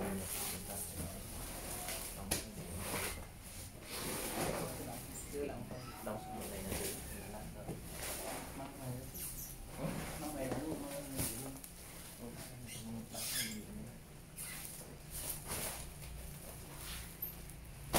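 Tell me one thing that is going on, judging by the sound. Plastic wrap crinkles and rustles as a wrapped case is handled.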